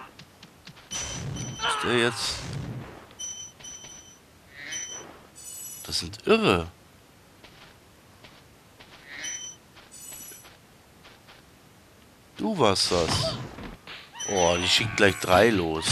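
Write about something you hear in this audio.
Bright chiming pings ring out again and again in a game.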